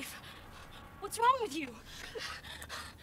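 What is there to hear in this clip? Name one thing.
A woman screams in fright.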